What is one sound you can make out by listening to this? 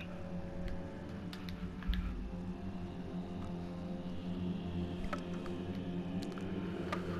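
Short menu clicks sound as items are picked.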